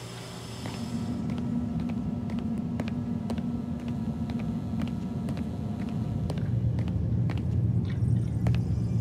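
Footsteps tap on a hard floor at a steady pace.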